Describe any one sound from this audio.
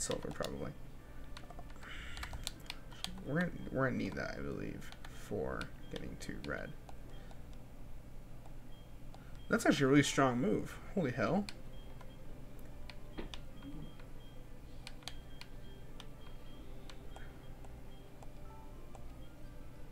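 Short electronic menu blips tick now and then.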